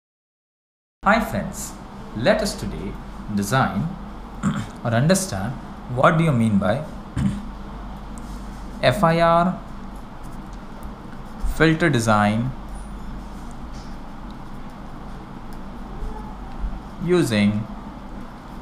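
A young man speaks calmly into a microphone, in short phrases with pauses.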